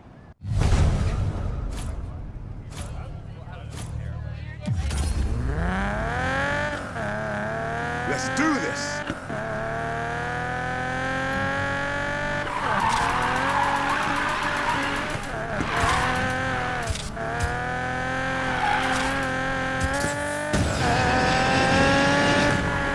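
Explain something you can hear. A sports car engine idles, then roars and revs hard as the car accelerates through the gears.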